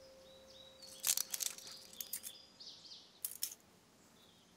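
A key clicks and rattles in a metal handcuff lock.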